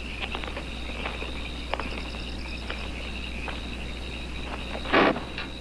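A bag crinkles in someone's arms.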